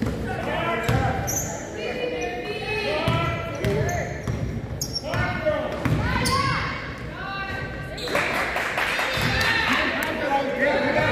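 Sneakers squeak sharply on a wooden floor in an echoing gym.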